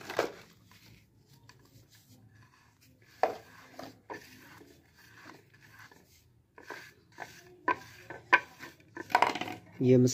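Fingers rub and scrape softly across a plate.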